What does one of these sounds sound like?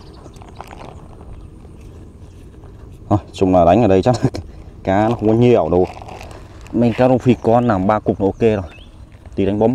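A plastic bag rustles.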